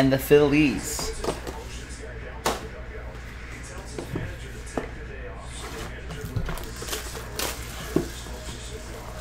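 Cardboard boxes knock and tap as they are handled.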